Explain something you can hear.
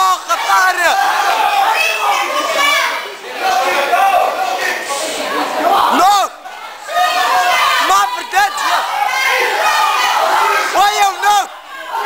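Young spectators shout and cheer excitedly nearby.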